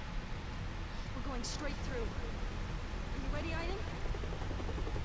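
A young woman speaks breathlessly, close by.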